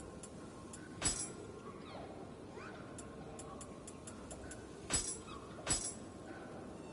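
Menu selection sounds click sharply.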